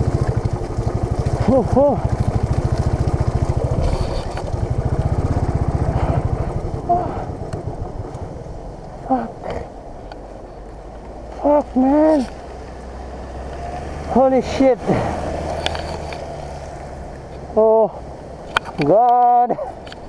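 A motorcycle engine thumps steadily, then idles more quietly.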